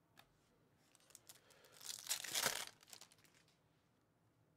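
Plastic card wrappers crinkle and tear close by.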